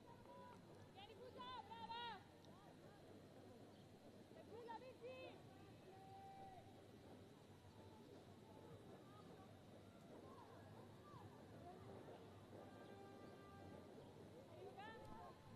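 Young women shout to each other across an open playing field, heard from a distance.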